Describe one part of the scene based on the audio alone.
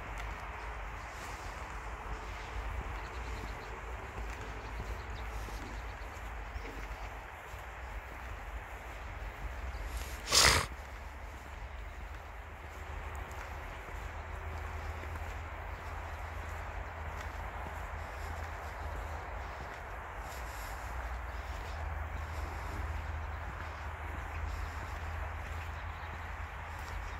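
Wind rustles through tall grass outdoors.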